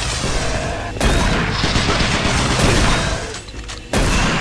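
A shotgun fires loudly in bursts.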